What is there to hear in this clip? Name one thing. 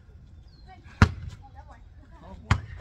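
A ball thuds sharply on pavement.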